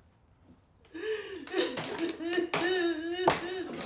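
A young woman talks and laughs.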